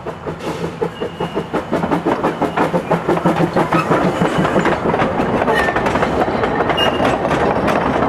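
Metal wheels squeal briefly against the rails.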